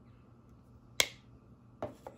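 A plastic case lid snaps shut with a sharp click.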